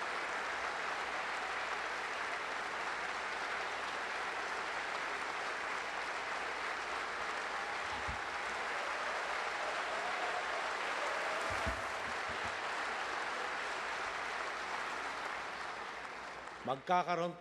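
A large audience applauds steadily, then the clapping fades away.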